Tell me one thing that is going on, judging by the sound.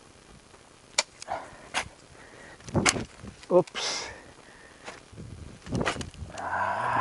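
A person chops into soil with a hoe.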